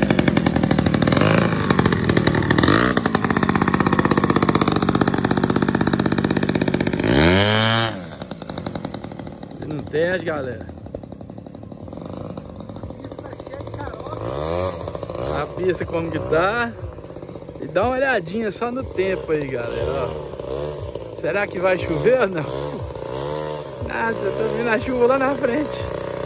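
A small model plane engine buzzes loudly, its pitch rising and falling as it revs.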